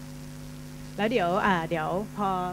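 A young woman speaks brightly into a microphone over a loudspeaker.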